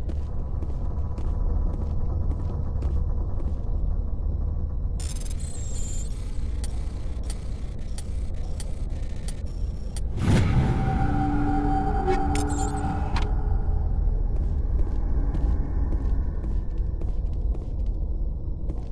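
Footsteps tap on a metal floor.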